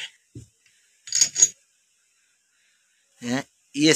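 A metal ram scrapes out of a hydraulic bottle jack.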